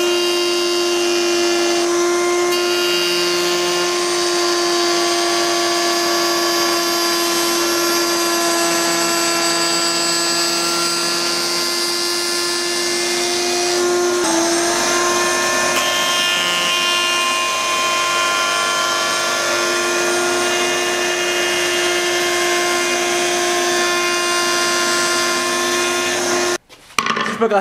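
A router spins with a steady, high whine and cuts wood.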